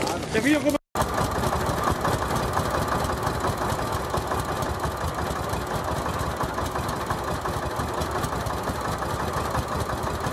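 A tractor engine idles with a steady rumble.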